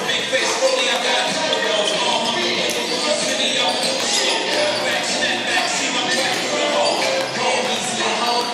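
Basketballs bounce on a wooden court in a large echoing gym.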